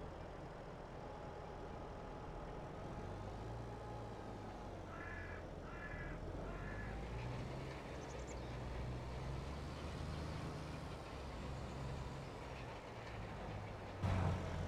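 A tractor engine drones steadily as it drives.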